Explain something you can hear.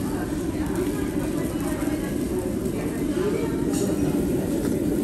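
A soup bubbles at a boil in a pot.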